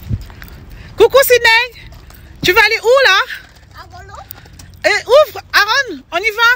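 A young boy speaks excitedly close by.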